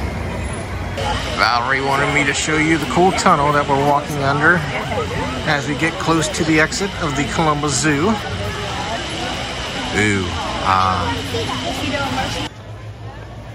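A crowd of people chatters and talks nearby outdoors.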